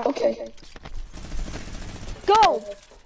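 A gun fires several quick shots.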